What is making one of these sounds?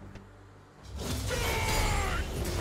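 A magic spell bursts with a bright, crackling whoosh.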